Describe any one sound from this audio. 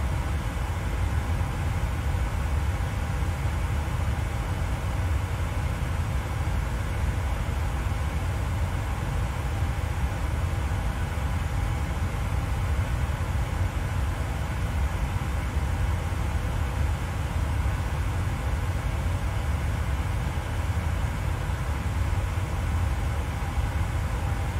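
Jet engines hum with a steady low rumble.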